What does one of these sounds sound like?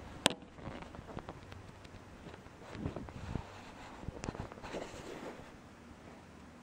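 Bedding rustles close by.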